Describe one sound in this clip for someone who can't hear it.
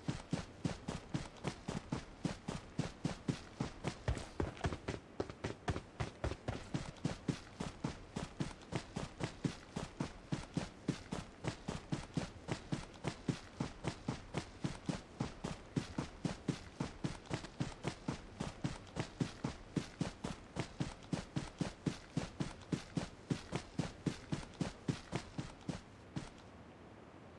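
Quick footsteps run over grass at a steady pace.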